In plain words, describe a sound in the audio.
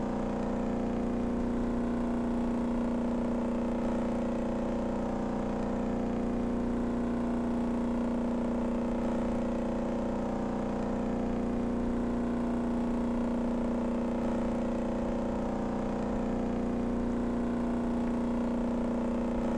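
A hovercraft engine drones steadily at high speed.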